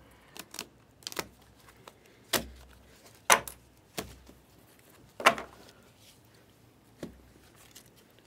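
Trading cards rustle and slide as a hand handles them.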